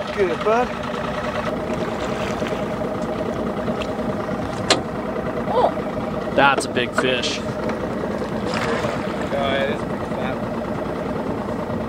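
A large fish splashes and thrashes in the water.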